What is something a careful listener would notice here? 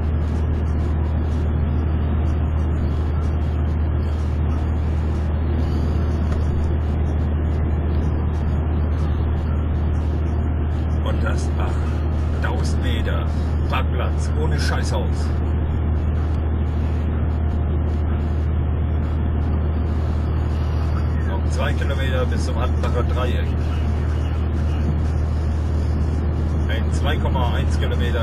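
A car engine drones steadily with a low road rumble.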